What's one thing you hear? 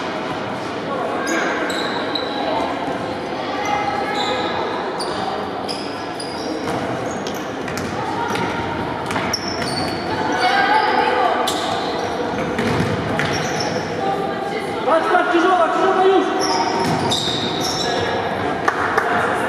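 Young boys shout and call out to each other in a large echoing hall.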